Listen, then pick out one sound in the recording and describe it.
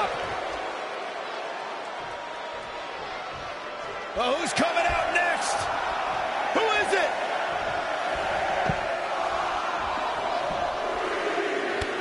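Heavy bodies thud and slam onto a wrestling mat.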